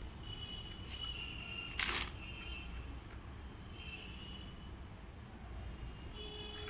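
Hands pat and squish wet sand.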